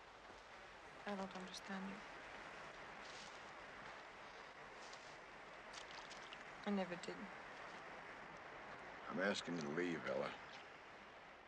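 A man speaks quietly.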